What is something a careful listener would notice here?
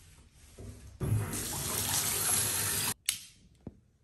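Water gushes from a tap into a tub.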